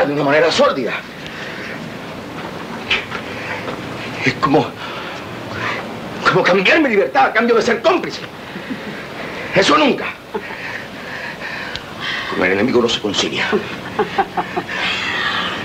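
A man speaks agitatedly, close by.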